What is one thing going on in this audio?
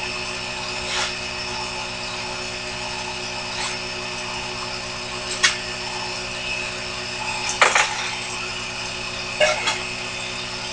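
Metal parts click and clack as a lathe is adjusted by hand.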